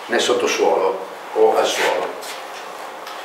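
A middle-aged man speaks calmly in a room with some echo.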